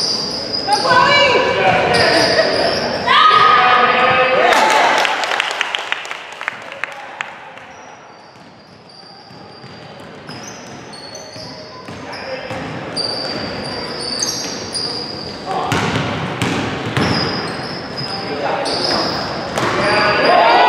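Sneakers squeak sharply on a gym floor, echoing in a large hall.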